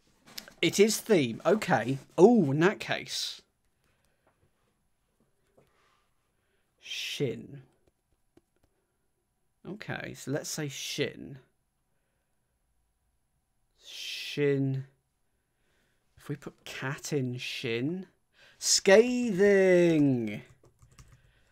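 A young man speaks close to a microphone, thinking aloud in short bursts.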